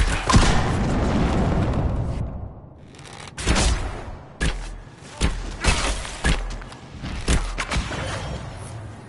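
Magic bolts crackle and blast in a fight.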